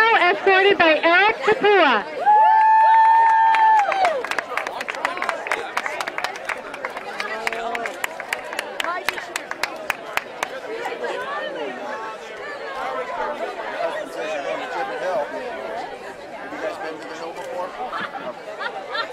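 A crowd of young men and women cheers and chatters nearby outdoors.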